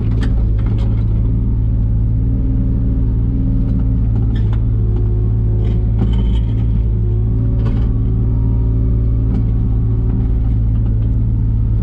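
A digger's bucket scrapes and knocks against soil and stones.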